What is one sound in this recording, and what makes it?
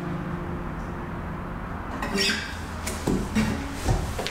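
An acoustic guitar plays steady strummed chords.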